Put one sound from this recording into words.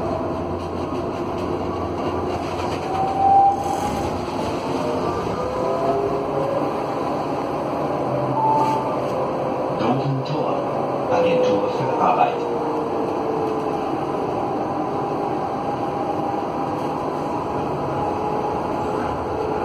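A tram rumbles and hums steadily as it rolls along the tracks.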